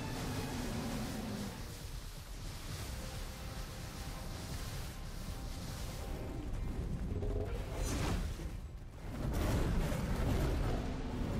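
Large creatures roar and screech in a fight.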